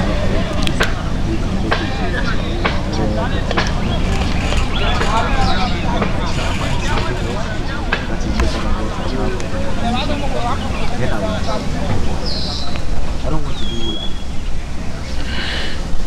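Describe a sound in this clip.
Distant players shout across an open field outdoors.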